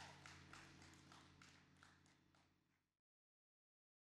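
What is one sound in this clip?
Drums and cymbals are played in a lively beat, then fade to silence.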